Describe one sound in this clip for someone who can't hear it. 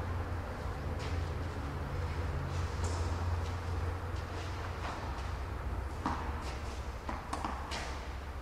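Tennis balls are struck with rackets, echoing in a large indoor hall.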